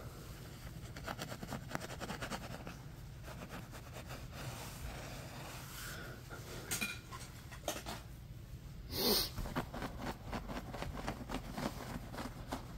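Fingers scratch and pluck at carpet fibres close by.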